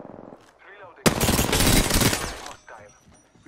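A rifle fires a rapid burst of shots at close range.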